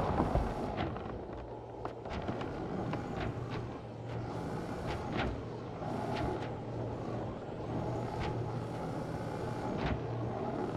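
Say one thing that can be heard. A machine engine hums steadily.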